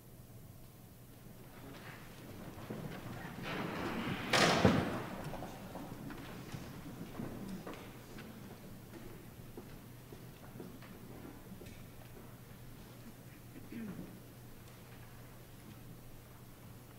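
An orchestra plays softly in a large echoing hall.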